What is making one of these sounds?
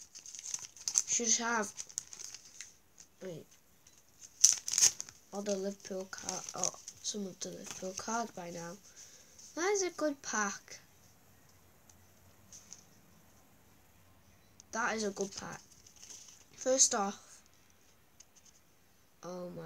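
Playing cards rustle and flick in a child's hands.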